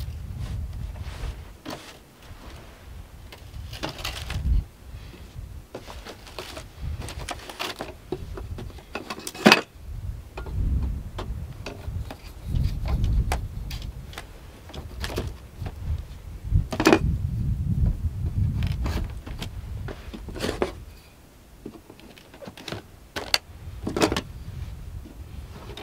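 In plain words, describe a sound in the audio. A folding aluminium camp table clicks and rattles as it is unfolded.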